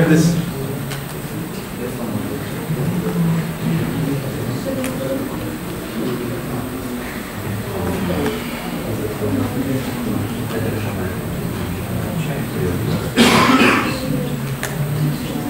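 A man speaks calmly into a microphone in a large room.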